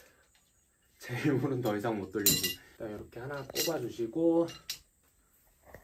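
A middle-aged man talks calmly up close.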